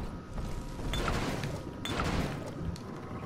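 A short bright chime sounds twice as items are picked up.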